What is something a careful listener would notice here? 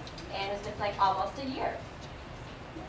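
A woman speaks to an audience in a room.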